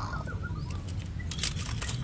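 Plastic toy cars clatter against each other in a plastic basket.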